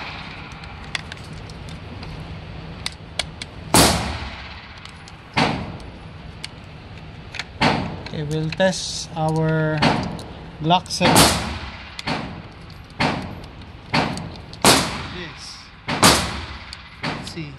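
Cartridges click one by one into a pistol magazine.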